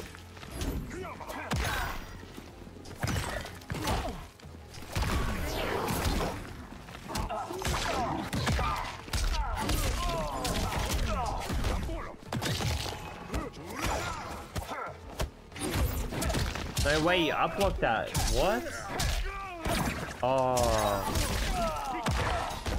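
Blows land with heavy thuds and crashes in a fighting game.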